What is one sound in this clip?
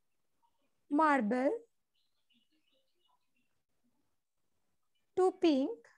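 A woman speaks in short phrases over an online call.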